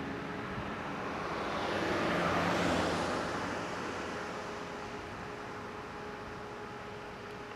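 A car drives past on the road and fades away.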